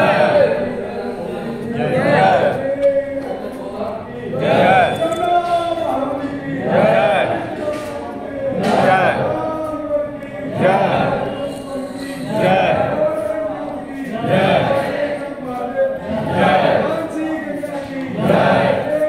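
A group of men and women chant a prayer together in a steady, repeating refrain.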